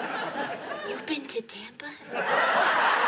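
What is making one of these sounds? A middle-aged woman speaks calmly, close by.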